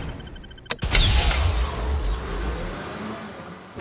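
A building explodes with a loud, rumbling blast.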